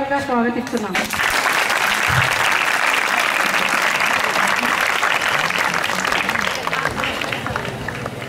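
A crowd of girls claps their hands.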